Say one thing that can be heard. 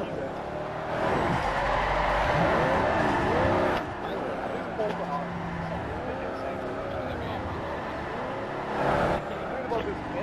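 Tyres screech as a van drifts through corners.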